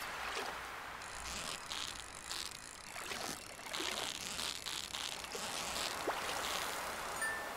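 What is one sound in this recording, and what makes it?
A fishing reel whirs as a line is reeled in.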